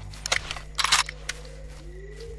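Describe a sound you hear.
A shotgun is loaded with sharp metallic clicks.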